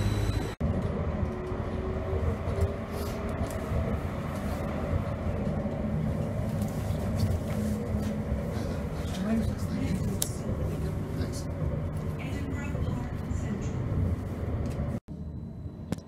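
A tram rumbles along steadily inside the carriage.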